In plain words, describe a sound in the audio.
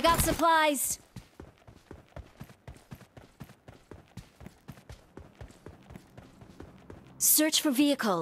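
Quick footsteps run over hard ground.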